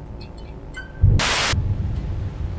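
A burst of loud static hisses.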